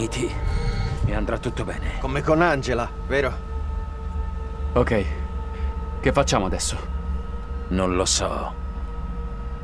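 A man speaks calmly and firmly nearby.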